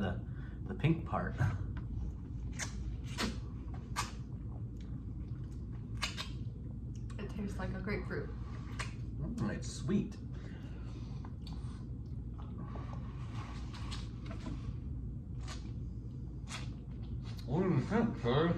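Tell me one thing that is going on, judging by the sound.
A woman slurps and chews juicy fruit.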